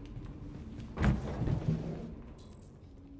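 A wooden crate lid is pushed open with a thud.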